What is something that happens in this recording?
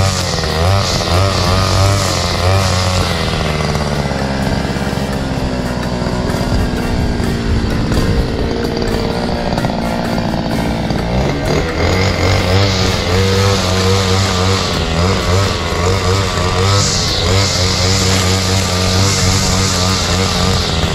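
A string trimmer engine drones loudly and revs up and down.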